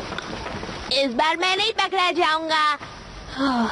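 A young boy shouts excitedly outdoors.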